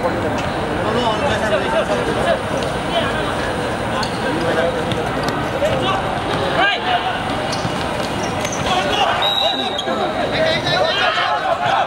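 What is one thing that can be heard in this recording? A crowd of spectators chatters nearby, outdoors.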